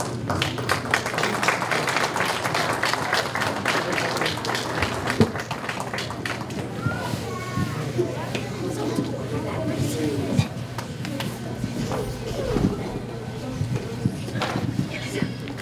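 Children chatter nearby.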